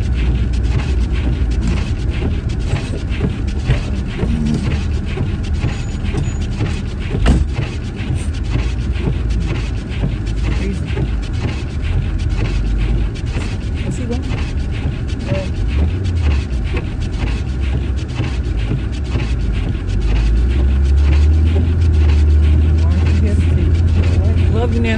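A car engine and tyres rumble low and steadily on the road.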